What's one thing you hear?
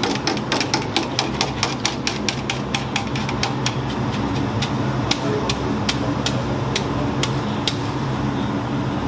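A wooden pole knocks rapidly against a metal pot.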